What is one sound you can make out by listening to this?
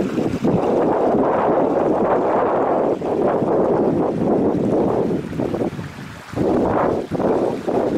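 Shallow water trickles over stones.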